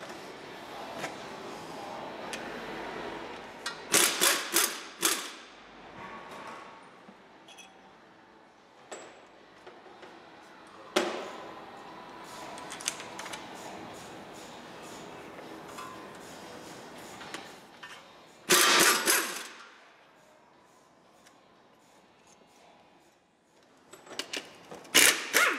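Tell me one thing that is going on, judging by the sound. Metal tools clank and knock against car parts.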